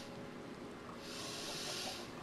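Rain falls with a steady hiss.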